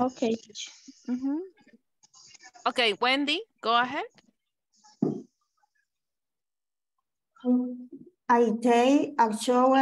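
A woman speaks in short phrases through an online call.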